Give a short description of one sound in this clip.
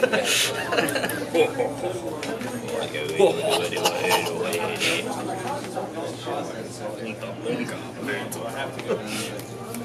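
Playing cards rustle softly in hands.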